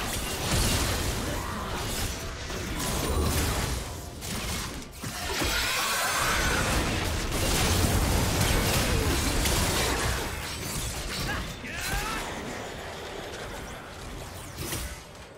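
Video game spell blasts and combat sound effects clash.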